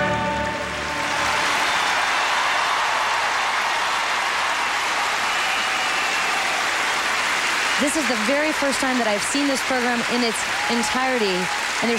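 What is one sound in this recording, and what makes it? A large crowd applauds and cheers in a big echoing arena.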